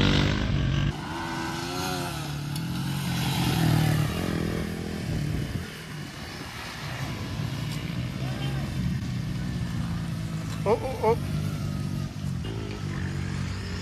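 Motorcycle engines buzz and whine in the distance.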